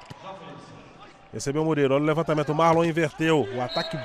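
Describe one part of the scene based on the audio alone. A volleyball is struck hard during a rally.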